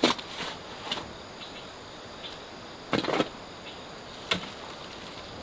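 A hoe chops into soil.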